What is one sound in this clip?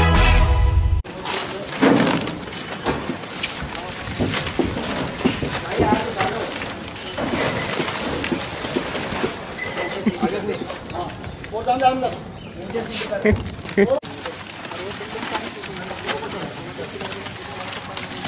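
Men knock and scrape a large wooden frame as they load it onto a truck.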